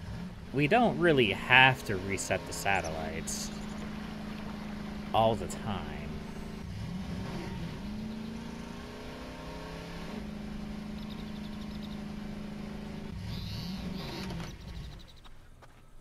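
A quad bike engine drones steadily as it drives along.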